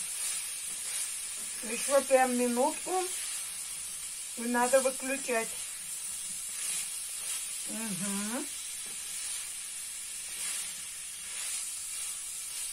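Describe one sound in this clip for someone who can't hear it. Meat sizzles steadily in a frying pan.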